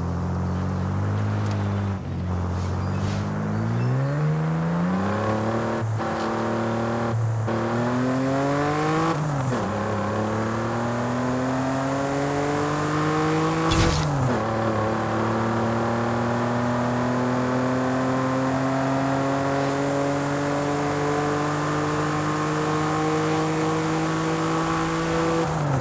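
A car engine revs up and climbs through the gears, its pitch rising between shifts.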